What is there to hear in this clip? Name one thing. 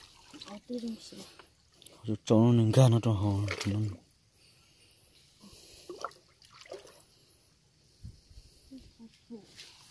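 Water splashes as hands dig in shallow water.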